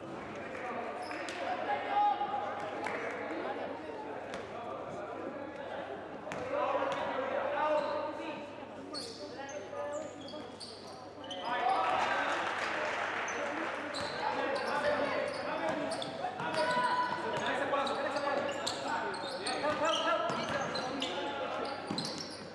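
Young men shout to each other across the court.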